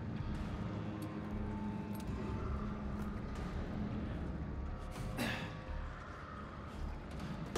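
A young woman talks quietly into a microphone.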